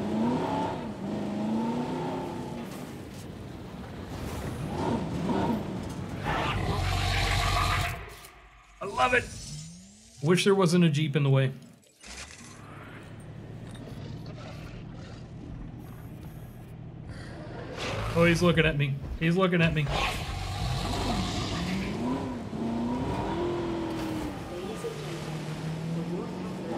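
A vehicle engine hums and revs.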